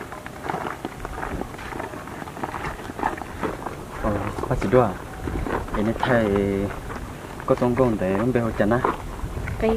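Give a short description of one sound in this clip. A young man talks nearby, outdoors.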